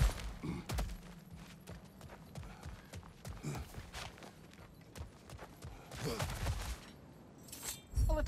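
Heavy footsteps crunch on gravel.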